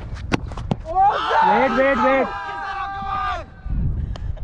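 A young man shouts from a distance across the field.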